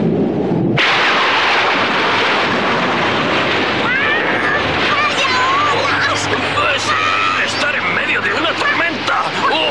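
Stormy waves crash and roar.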